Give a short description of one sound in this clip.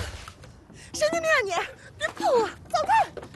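A young woman shouts angrily nearby.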